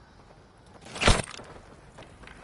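A gun fires a single loud shot.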